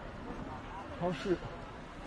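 A young man speaks calmly, close to the microphone.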